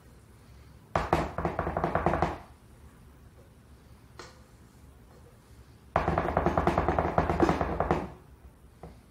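A spatula scrapes against a metal bowl.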